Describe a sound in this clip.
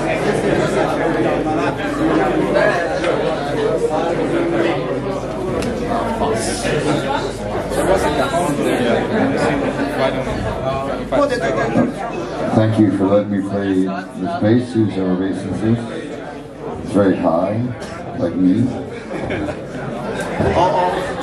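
An electric bass guitar plays.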